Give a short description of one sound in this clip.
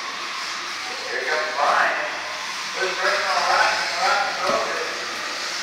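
A man talks loudly in a large echoing hall.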